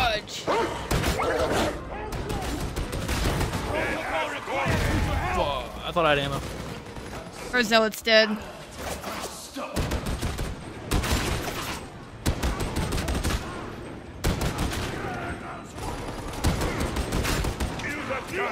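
Rapid gunfire blasts in bursts.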